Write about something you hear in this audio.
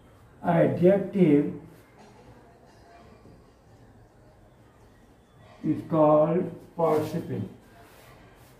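An elderly man speaks loudly and clearly, as if teaching.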